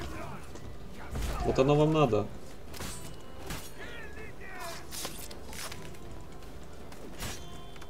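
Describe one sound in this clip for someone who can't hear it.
Swords clash and strike.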